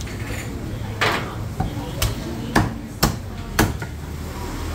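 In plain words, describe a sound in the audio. A cleaver chops sharply on a wooden board.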